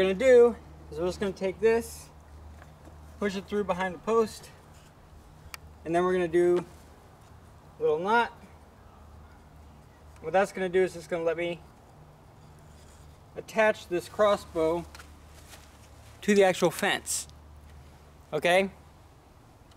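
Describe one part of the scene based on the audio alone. A man talks calmly in short bursts, close by.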